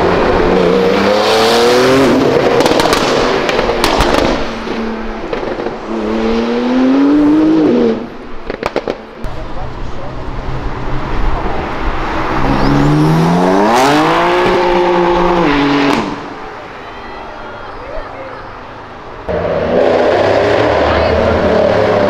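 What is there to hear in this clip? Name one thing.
A sports car engine roars loudly, revving up as it accelerates past.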